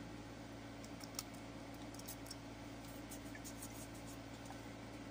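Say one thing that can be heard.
Faint clicks and taps of objects handled close to a microphone.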